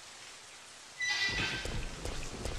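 A crow caws.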